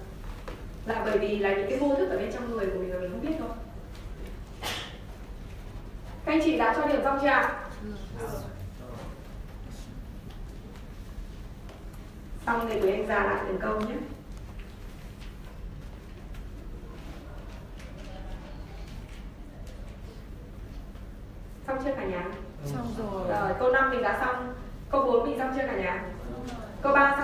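A woman speaks through a microphone and loudspeakers in an echoing room, pausing between phrases.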